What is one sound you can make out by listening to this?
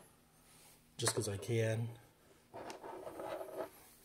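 A small battery is set down on a table with a light knock.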